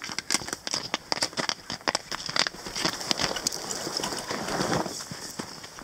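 A walking pole or ice axe strikes into crusted snow.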